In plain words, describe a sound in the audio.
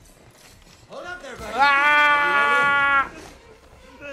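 A young man shouts out a long, drawn-out yell into a close microphone.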